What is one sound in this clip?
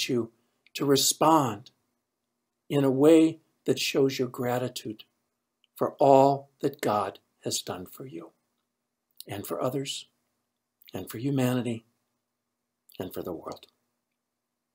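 An older man speaks calmly and close to a microphone, with pauses.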